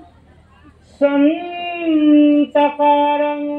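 A harmonium plays a sustained note.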